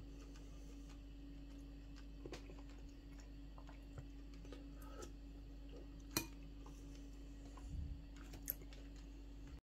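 A metal spoon clinks against a ceramic bowl.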